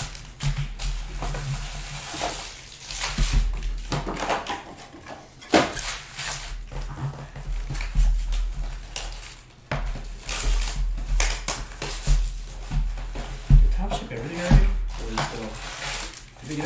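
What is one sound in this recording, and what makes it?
Foil card packs rustle and crinkle as they are handled.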